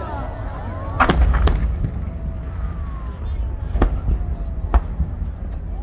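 Fireworks bang and crackle in the distance outdoors.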